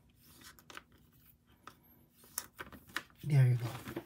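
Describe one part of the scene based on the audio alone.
A stiff plastic page flips over with a soft slap.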